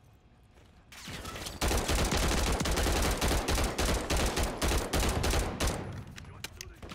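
An automatic gun fires rapid bursts of shots.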